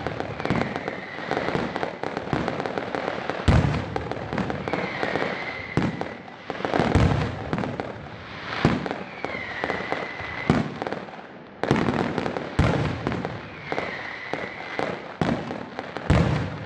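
Fireworks boom and bang loudly, one after another.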